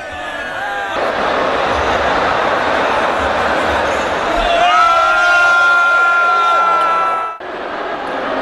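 A large crowd chatters in a big echoing hall.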